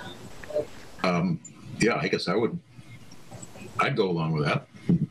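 An elderly man speaks over an online call.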